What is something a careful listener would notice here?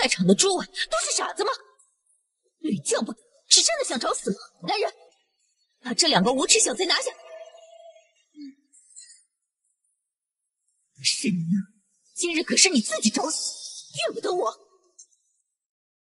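A young woman speaks sharply and with scorn, close by.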